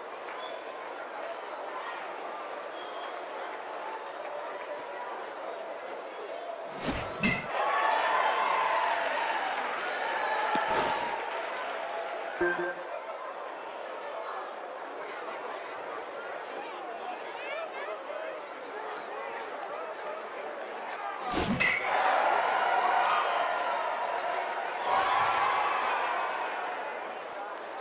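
A crowd murmurs steadily and cheers loudly in bursts.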